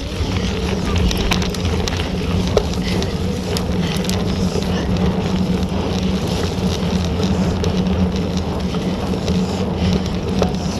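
Wind rushes past a microphone outdoors.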